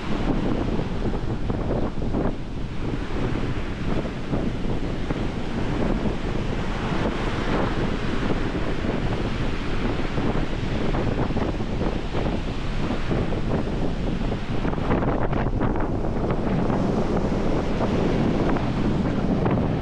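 Wind blows hard into a microphone outdoors.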